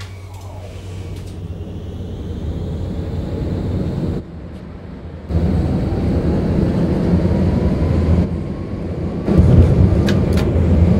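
Tram wheels rumble loudly along the rails.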